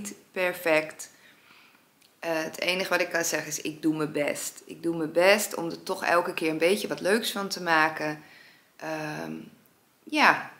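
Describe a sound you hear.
A young woman talks calmly close to the microphone.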